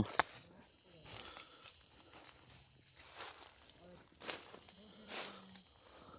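Footsteps rustle through dry fallen leaves.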